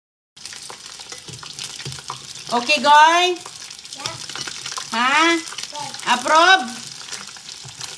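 Food sizzles and crackles in a frying pan.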